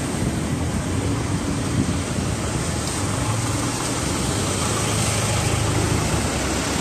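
A light diesel truck drives past on the street.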